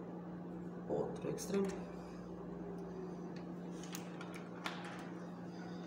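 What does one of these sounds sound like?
Wire plugs click into sockets.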